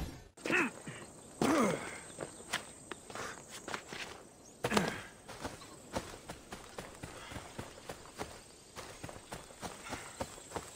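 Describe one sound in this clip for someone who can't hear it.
Footsteps crunch on dry grass and rock.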